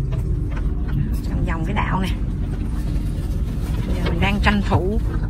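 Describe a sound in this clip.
Small waves lap gently against a boat hull.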